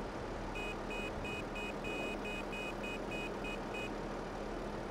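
A loader's reversing alarm beeps rapidly and then stops.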